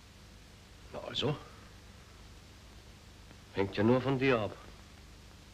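A middle-aged man speaks briefly in a deep voice.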